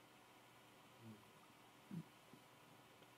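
A man murmurs briefly and quietly in a room.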